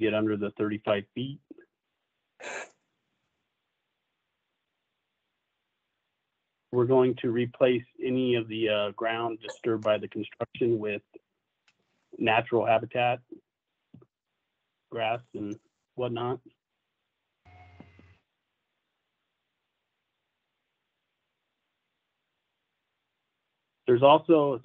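A man speaks calmly over an online call, pausing now and then.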